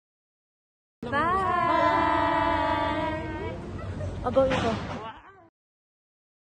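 A group of young people call out together loudly and happily, close by.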